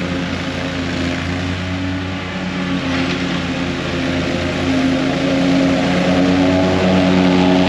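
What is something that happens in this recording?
A riding lawn mower engine drones steadily and grows louder as it approaches.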